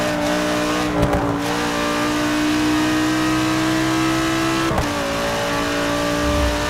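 A racing car engine roars at high revs, rising in pitch as it accelerates.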